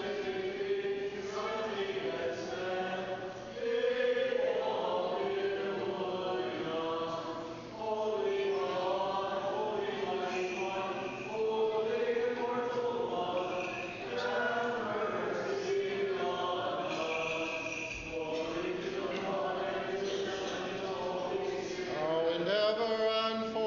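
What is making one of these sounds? A man chants slowly in a large echoing hall.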